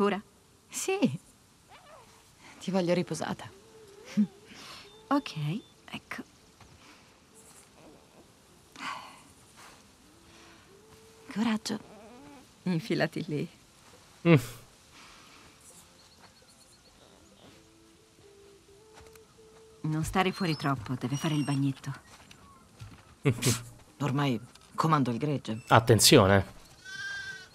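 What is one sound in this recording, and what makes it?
A young woman speaks softly and calmly close by.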